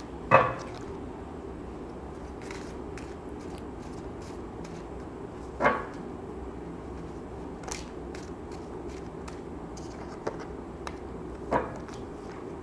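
Cards are shuffled with a soft rustling and tapping.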